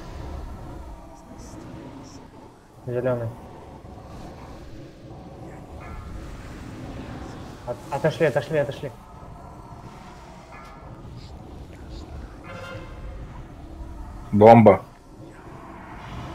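Magic spells whoosh and crackle amid a fight.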